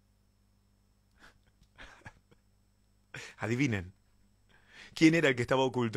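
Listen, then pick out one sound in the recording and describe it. A young man laughs close into a microphone.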